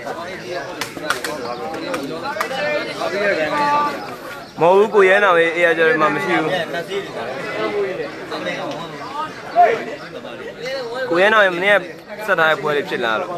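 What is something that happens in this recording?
A crowd of spectators chatters and calls out loudly outdoors.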